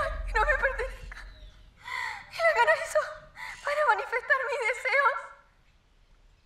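A woman sings in a clear, wavering voice nearby.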